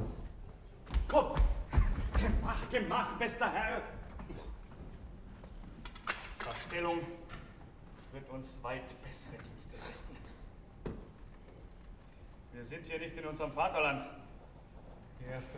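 A middle-aged man sings loudly with animation.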